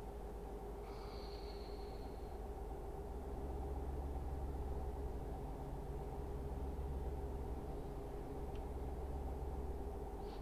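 A truck engine hums steadily while driving at speed.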